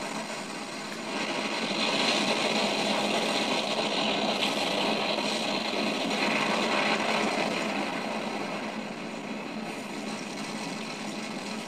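Wind howls steadily.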